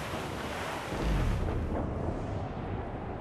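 A deep rumble booms as a ship's hull strikes the water.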